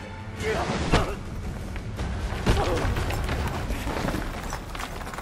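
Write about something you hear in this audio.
Rocks crash and tumble loudly.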